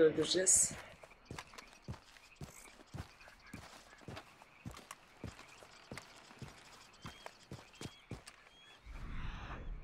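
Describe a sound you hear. Footsteps crunch steadily on rock and gravel.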